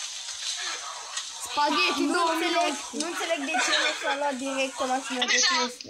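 A teenage boy talks and laughs close to a microphone.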